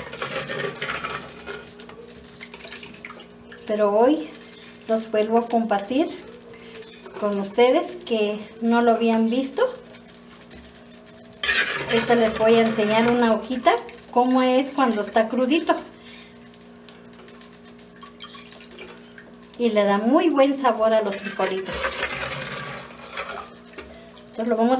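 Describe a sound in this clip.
A ladle scrapes and clinks against a metal pot.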